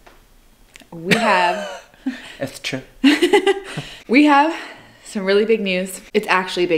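A young woman speaks and laughs close by.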